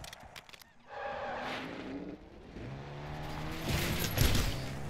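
A vehicle engine hums and revs.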